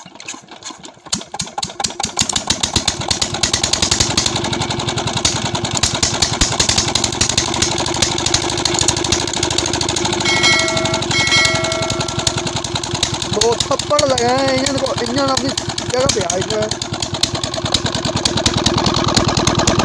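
A diesel engine sputters into life and chugs rapidly and loudly.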